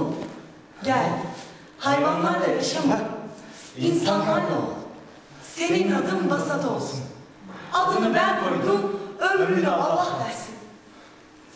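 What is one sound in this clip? A young woman cries out with emotion, close by.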